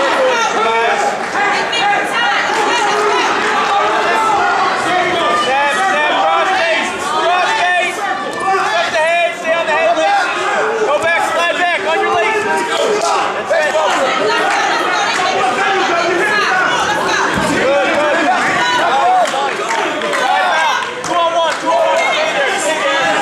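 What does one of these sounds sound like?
Spectators shout and cheer loudly in an echoing hall.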